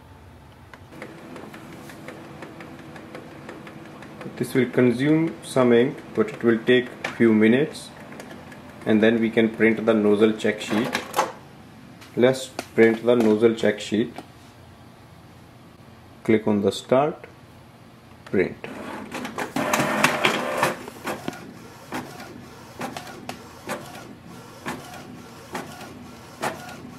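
A printer hums and whirs steadily.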